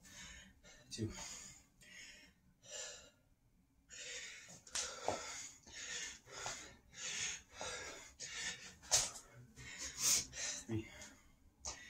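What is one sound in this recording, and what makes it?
Feet thump on a floor as a man jumps.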